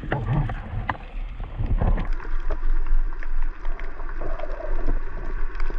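Water rumbles low and muffled underwater.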